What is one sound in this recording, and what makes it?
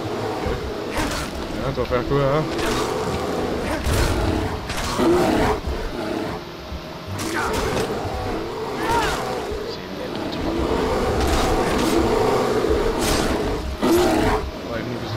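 A blade slashes into flesh.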